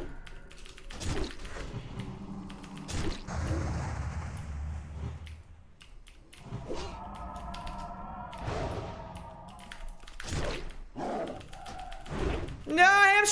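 Weapons strike and clash in a fight.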